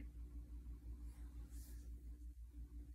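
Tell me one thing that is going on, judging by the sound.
Fabric rustles softly as a hand brushes against a shirt.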